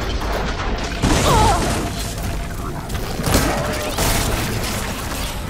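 A large mechanical creature roars and clanks.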